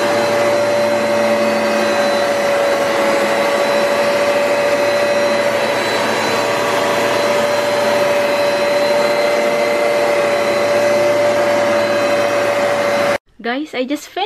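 A vacuum cleaner hums loudly and steadily.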